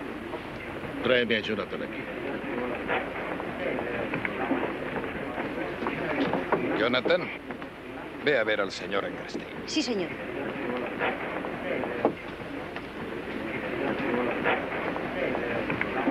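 A crowd of men murmurs and chatters in the background.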